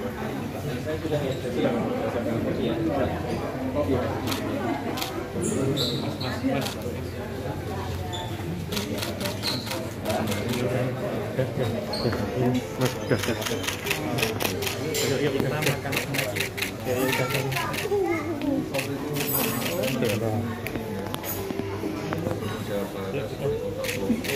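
Several people chatter in the background.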